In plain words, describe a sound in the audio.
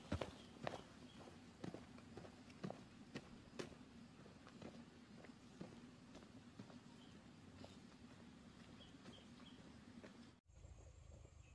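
Bare feet pad and scuff on a dirt path, close by.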